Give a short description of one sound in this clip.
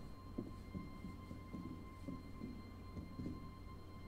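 Footsteps tap softly.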